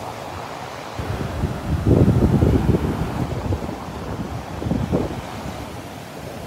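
Wind gusts roar against the microphone outdoors.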